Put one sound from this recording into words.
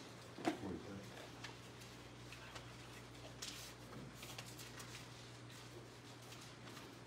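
Men and women chat quietly in a large room.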